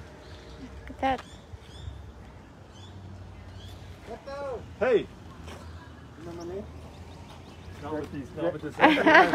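Men talk with animation nearby.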